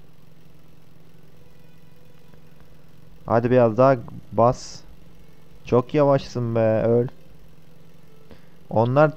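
A quad bike engine hums steadily.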